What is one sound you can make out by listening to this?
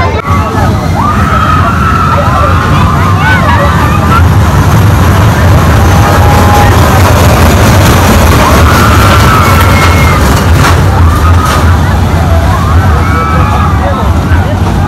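Children shout and squeal on a ride.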